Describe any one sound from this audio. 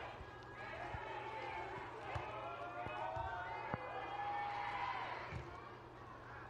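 A volleyball is struck with dull thuds.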